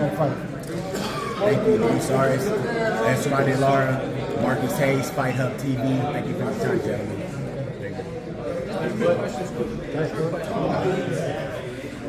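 A young man talks calmly close by.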